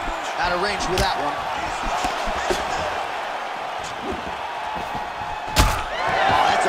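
A punch lands with a dull thud.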